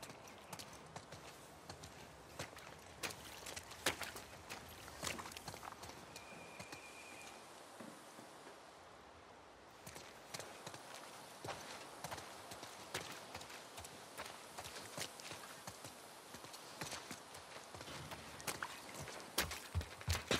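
Footsteps crunch through grass and rubble at a steady walking pace.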